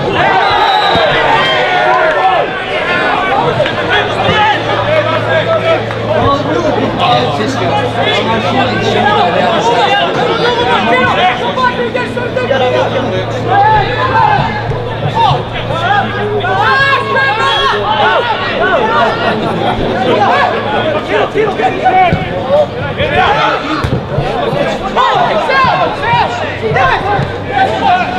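A crowd of spectators chatters and shouts outdoors.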